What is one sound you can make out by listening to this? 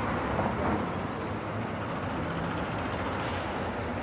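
City buses idle with a low engine rumble.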